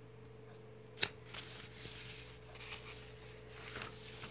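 Paper pages rustle as a book is handled close by.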